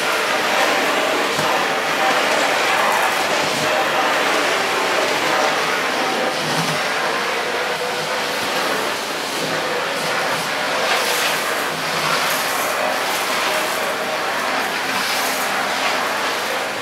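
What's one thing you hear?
A vacuum cleaner roars steadily close by.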